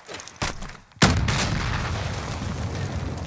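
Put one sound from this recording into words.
A grenade explodes with a loud, deep boom that rumbles away.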